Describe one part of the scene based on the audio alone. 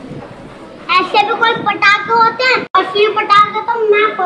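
A young boy talks animatedly close by.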